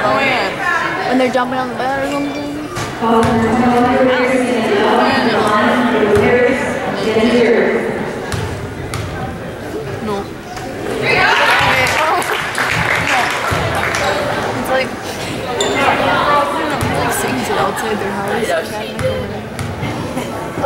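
Spectators shout and cheer in a large echoing gym.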